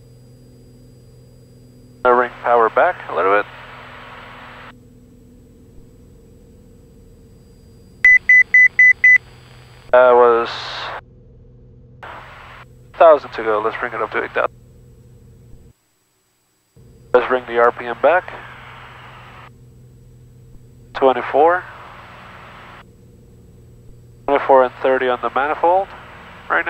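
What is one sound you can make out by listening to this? An aircraft engine drones steadily inside the cabin.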